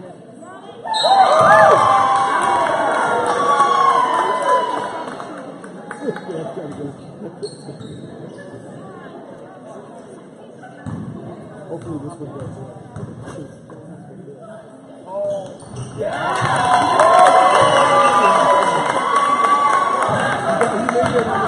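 A crowd of spectators cheers and shouts loudly in an echoing gym.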